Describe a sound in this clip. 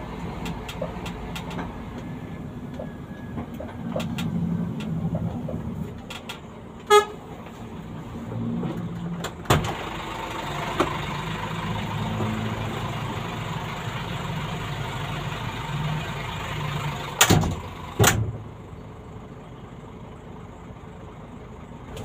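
A car engine hums, heard from inside the cabin.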